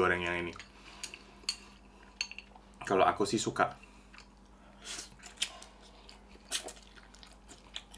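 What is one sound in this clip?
A man chews with wet smacking sounds.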